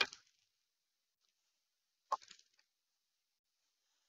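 Dice clatter into a tray.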